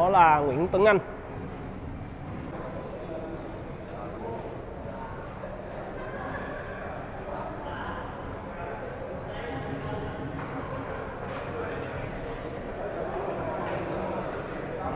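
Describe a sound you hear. A crowd of people murmurs and chats nearby in an echoing hall.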